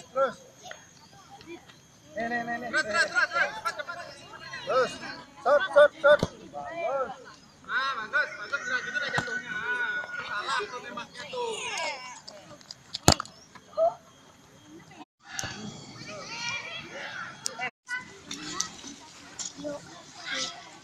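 Young children shout and chatter excitedly outdoors.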